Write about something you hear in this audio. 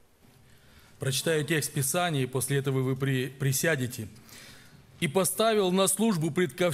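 A man speaks with animation into a microphone, his voice filling a large hall.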